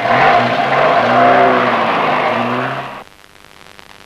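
A car engine roars loudly.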